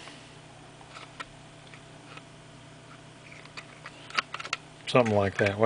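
Plastic parts click and rattle as they are handled.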